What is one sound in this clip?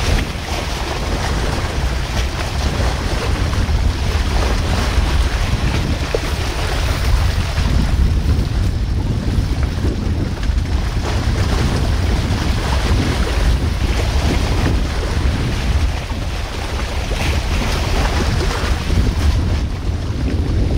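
Wind blows and rumbles across the microphone outdoors.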